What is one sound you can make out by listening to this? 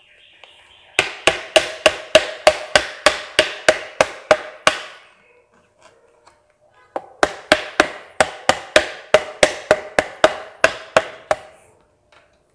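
A mug clicks rhythmically as it is turned in a plastic holder.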